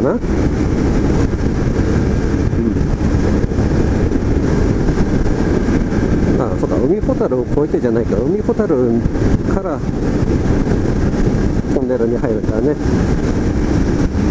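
Wind roars and buffets against a microphone.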